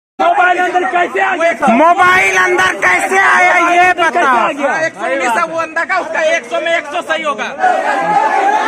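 Men argue loudly at close range, shouting over one another.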